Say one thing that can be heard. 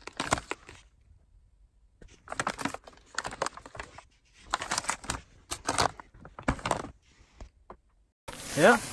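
A cardboard box rustles and knocks as it is handled.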